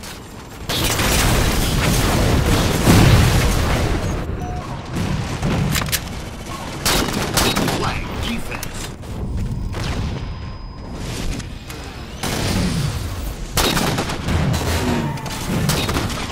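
Gunfire bursts loudly.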